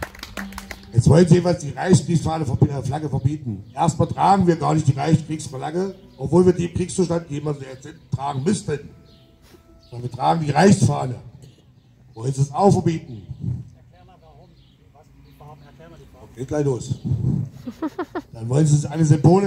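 A middle-aged man sings loudly into a microphone through a loudspeaker outdoors.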